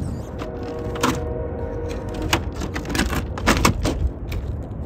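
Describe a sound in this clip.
A toy truck topples over and clatters against stone.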